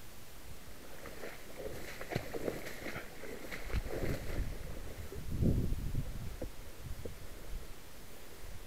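Tall grass rustles and swishes close by.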